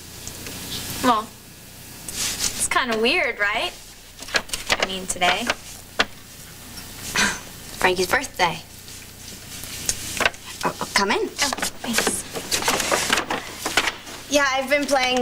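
A young woman speaks with a smile, close by.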